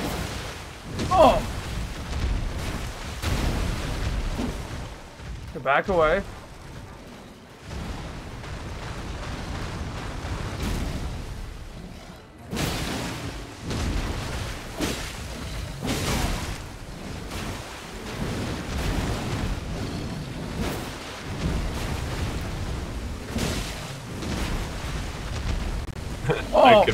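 A large beast roars and growls loudly.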